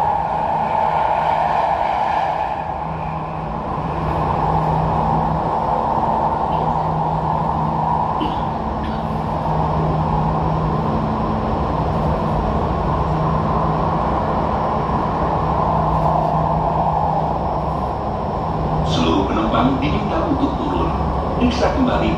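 A train hums and rumbles steadily along an elevated track.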